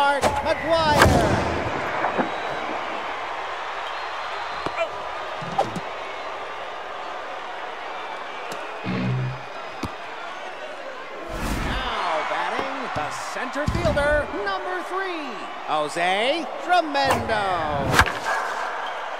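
A bat cracks against a baseball.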